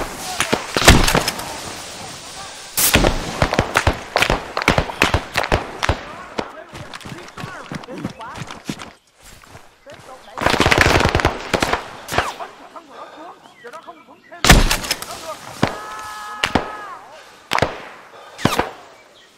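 A shotgun fires loud, booming blasts.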